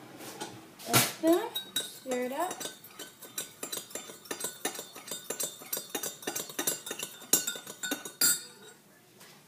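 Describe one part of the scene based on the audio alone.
A spoon clinks rapidly against the inside of a ceramic mug.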